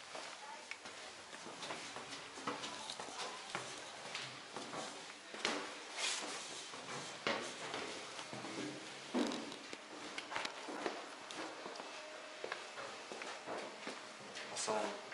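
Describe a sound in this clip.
Footsteps climb stairs and walk along a hard floor, close by.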